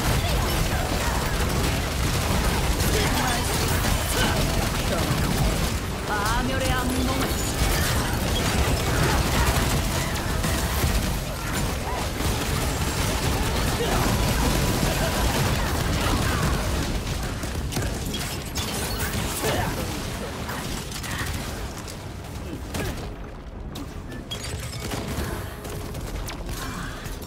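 Magic blasts explode with deep rumbling impacts.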